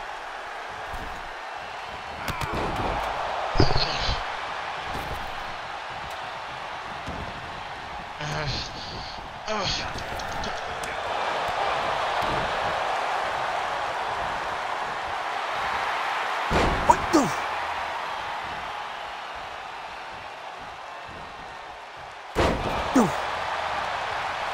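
A large crowd cheers steadily in a big arena.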